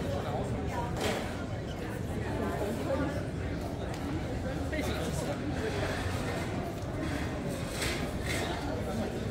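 A crowd of people chatters in the open air nearby.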